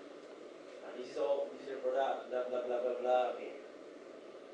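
A man speaks calmly over a loudspeaker on an online call.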